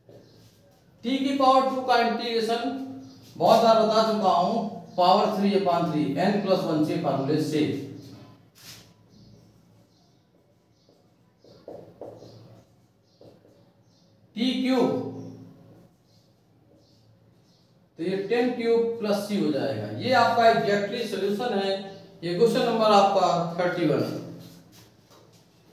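A man speaks clearly and steadily nearby, explaining in pauses.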